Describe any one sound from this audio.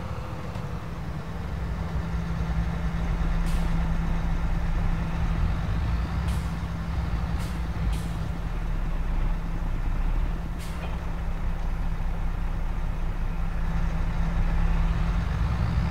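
A forage harvester drones nearby.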